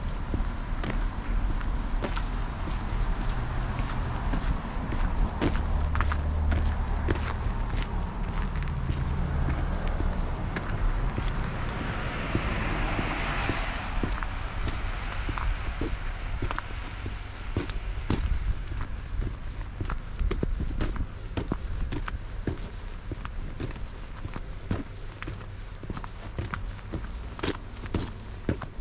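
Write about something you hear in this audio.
Footsteps crunch and scrape on packed snow at a steady walking pace.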